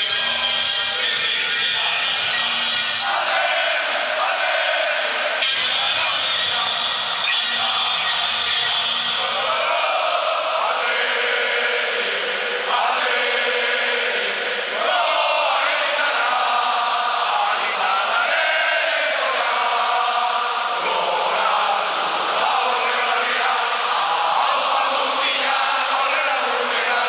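A huge stadium crowd sings loudly together in a large echoing space.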